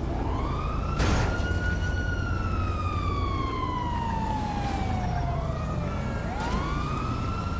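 A rocket launcher fires with a sharp blast.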